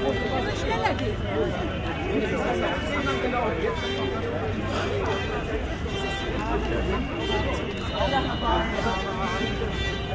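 A crowd of men and women chants and talks loudly outdoors.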